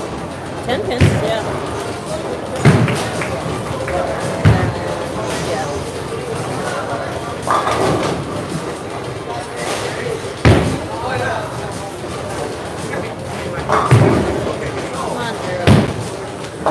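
Bowling pins crash and clatter in a large echoing hall.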